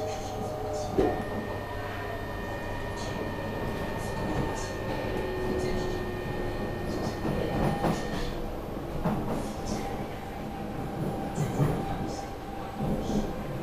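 Train wheels clack and knock over rail joints.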